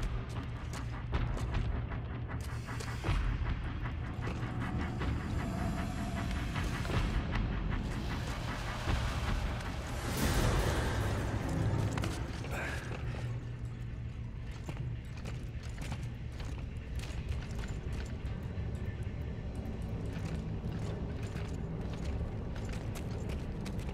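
Footsteps crunch over loose rubble.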